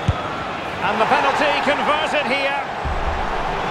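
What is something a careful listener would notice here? A crowd cheers loudly in a burst.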